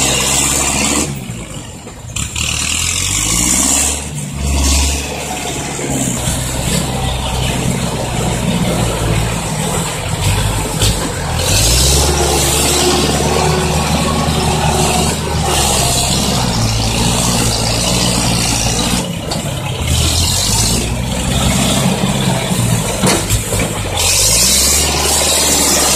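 A diesel truck engine rumbles and revs nearby.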